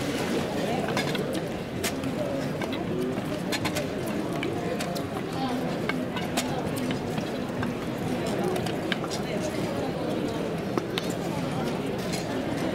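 Wooden staffs tap on stone paving.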